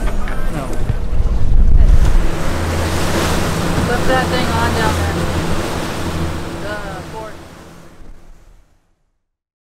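Outboard engines roar steadily.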